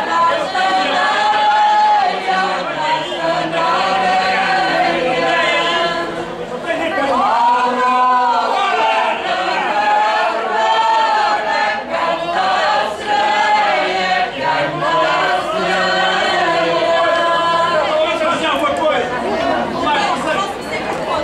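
A group of women sing together loudly outdoors.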